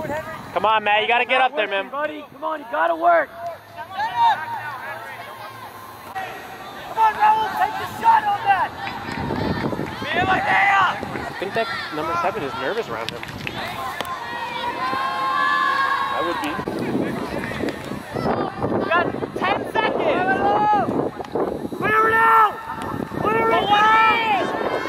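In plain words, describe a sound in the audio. Spectators call out and cheer outdoors.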